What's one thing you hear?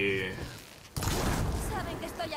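A fiery blast bursts with a loud roar.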